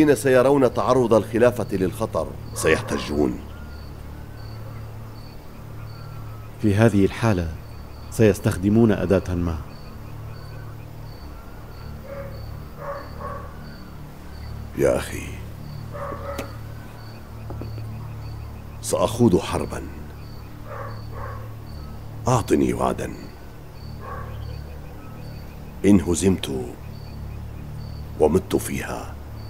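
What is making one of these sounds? An elderly man speaks quietly and calmly, close by.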